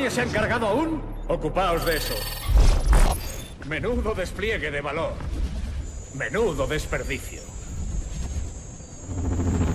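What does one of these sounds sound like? A man speaks in a cold, menacing tone.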